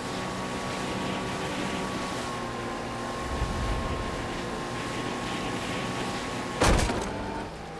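A jet ski engine drones steadily across water.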